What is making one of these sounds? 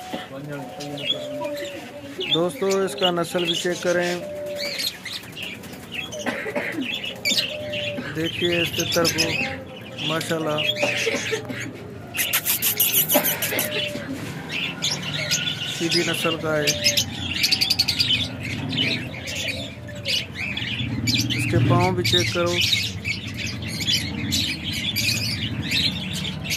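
A caged bird calls and chatters nearby.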